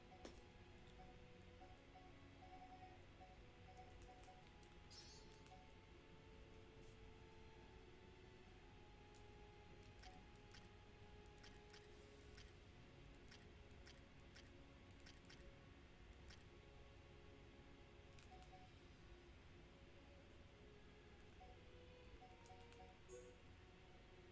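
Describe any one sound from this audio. Soft electronic menu blips sound as selections change.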